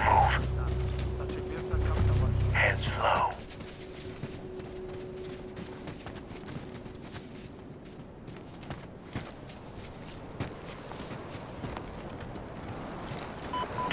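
Footsteps crunch softly on gravel and dirt.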